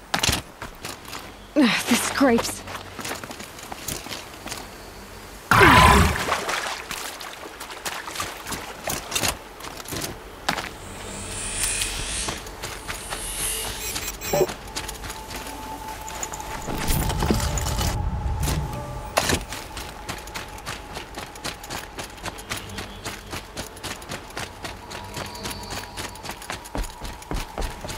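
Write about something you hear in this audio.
Footsteps thud quickly as a character runs.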